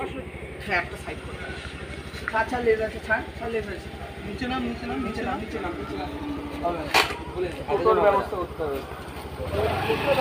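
Young men talk with each other nearby.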